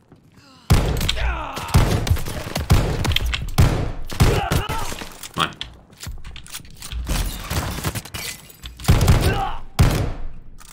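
Shotgun blasts boom again and again, echoing loudly.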